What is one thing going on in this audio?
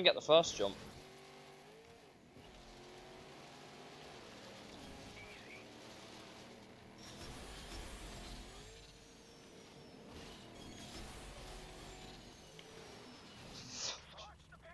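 A race car engine revs and roars steadily.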